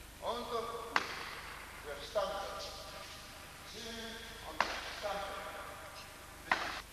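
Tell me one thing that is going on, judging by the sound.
A body thuds onto a mat in a judo throw.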